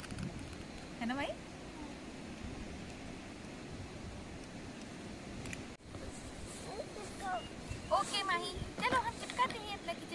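A young woman speaks softly and playfully nearby.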